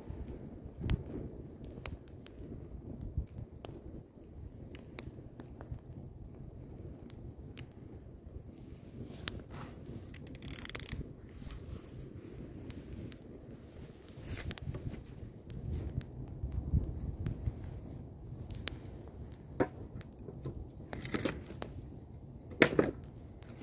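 Burning logs crackle and pop now and then.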